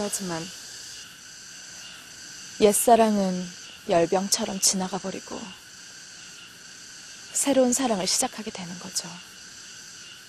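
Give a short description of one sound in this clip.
A young woman speaks calmly and quietly, close by.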